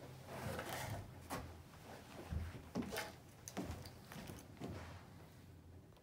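Footsteps thud on the floor as a man walks away.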